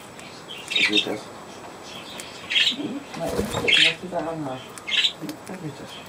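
Small birds chirp and screech in short bursts.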